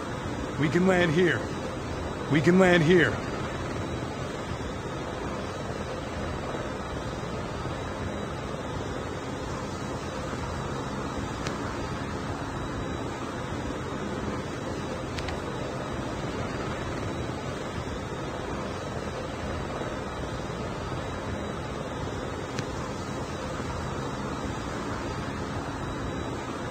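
Aircraft engines drone steadily.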